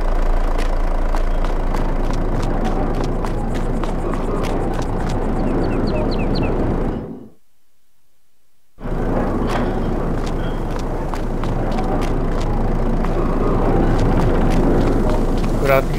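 Footsteps tap on hard pavement.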